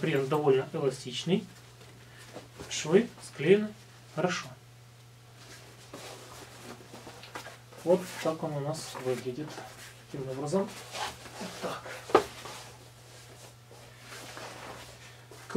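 A thick rubber suit rustles and flaps as it is handled.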